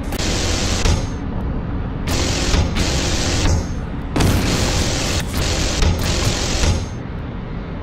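A cannon fires in loud, rapid bursts.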